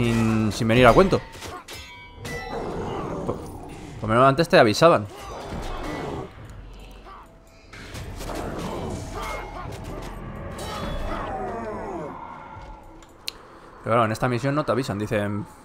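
Weapons clash and magic bursts crackle in a fight.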